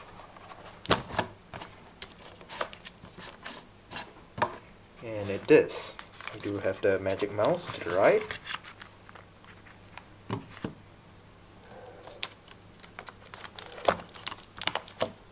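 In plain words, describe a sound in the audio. Cardboard packaging scrapes and knocks against a wooden surface.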